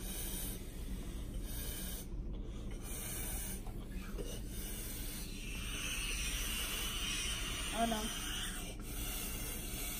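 A young boy blows air into a balloon.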